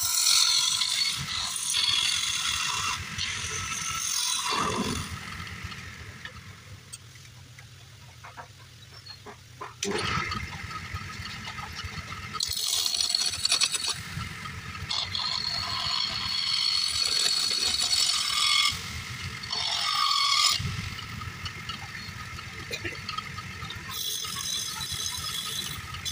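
A wood lathe motor hums and whirs steadily.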